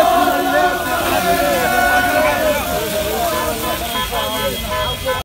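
A flare hisses and fizzes.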